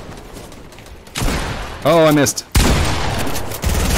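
Gunshots crack and bang.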